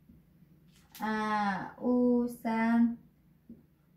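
A woman speaks calmly and close through a clip-on microphone.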